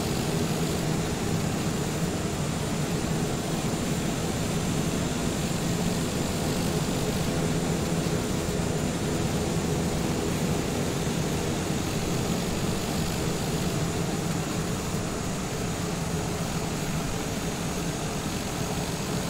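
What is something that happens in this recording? A single-engine turboprop taxis with a steady engine drone.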